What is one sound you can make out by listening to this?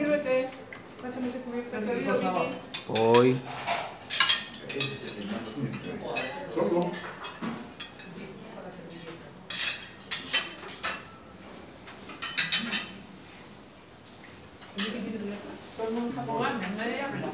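Adult men and women chat casually nearby.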